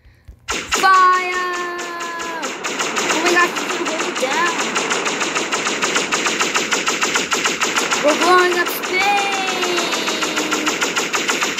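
A spaceship's lasers fire in a fast, steady stream of zaps.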